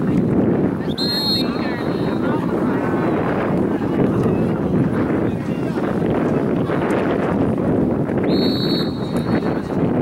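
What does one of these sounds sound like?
A referee's whistle blows sharply in the distance.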